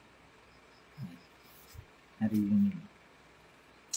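A man speaks briefly and calmly, close to the microphone.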